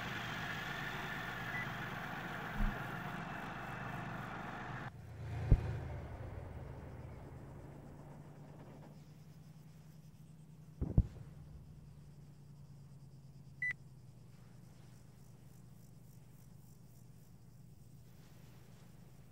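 A tank engine idles with a low, steady rumble.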